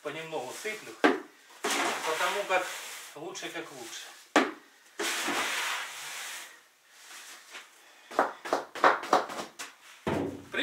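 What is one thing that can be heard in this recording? A metal bucket clanks and scrapes.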